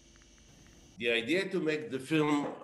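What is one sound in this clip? An older man speaks calmly through an online call.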